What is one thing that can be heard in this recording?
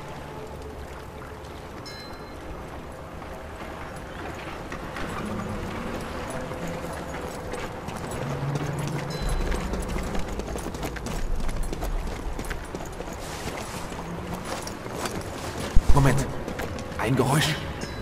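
Footsteps crunch softly on cobblestones.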